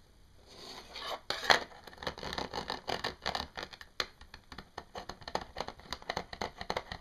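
Fingers tap and click on a hard surface.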